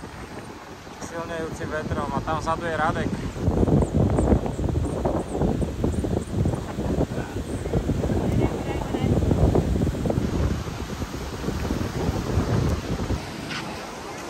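Waves crash and roll onto the shore.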